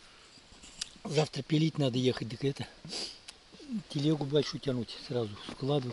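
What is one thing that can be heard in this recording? An elderly man talks calmly close by outdoors.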